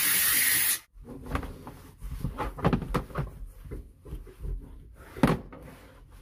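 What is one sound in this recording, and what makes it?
A cloth rubs and squeaks against a plastic panel.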